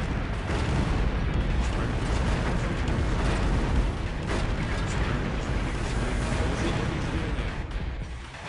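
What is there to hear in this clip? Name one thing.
Rapid automatic cannon fire rattles.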